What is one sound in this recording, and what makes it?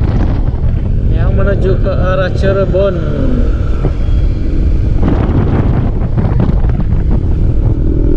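A motorcycle engine hums steadily nearby.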